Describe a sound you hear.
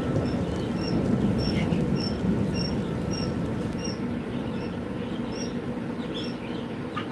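Many birds chirp and peep in cages nearby.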